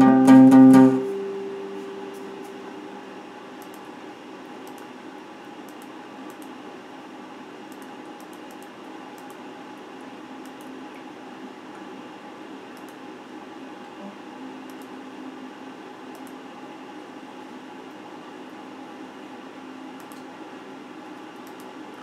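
An electric guitar plays soft, quiet notes.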